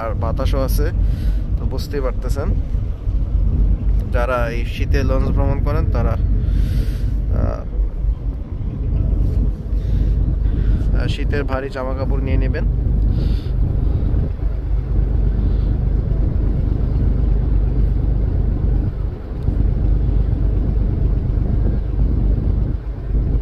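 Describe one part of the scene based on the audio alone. Strong wind blows and buffets outdoors.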